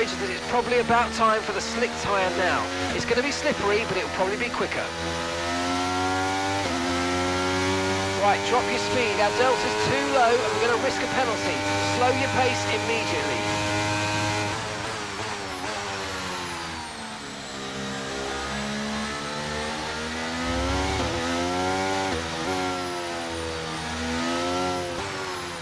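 A racing car engine hums steadily, its pitch rising and falling with the throttle.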